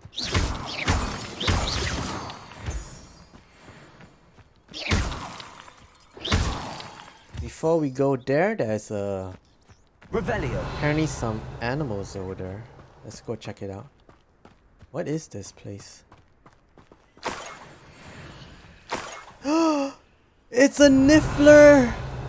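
Magic spells whoosh and crackle in bursts.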